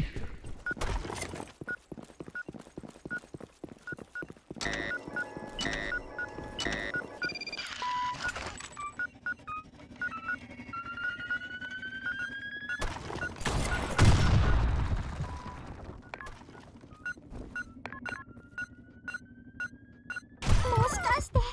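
An electronic bomb timer beeps at a steady pace, getting faster toward the end.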